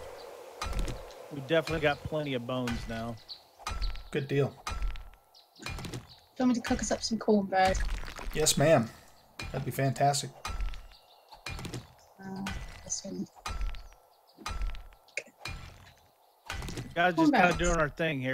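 A pickaxe strikes stone with sharp, repeated knocks.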